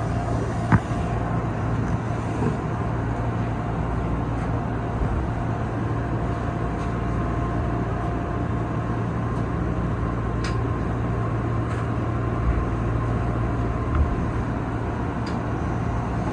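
Train wheels click over rail joints and points.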